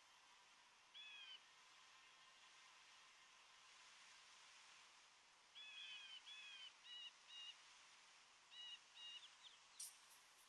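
Short high electronic chirps sound now and then.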